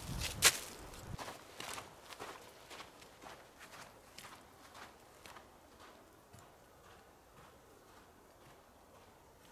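Footsteps crunch on snow and fade away.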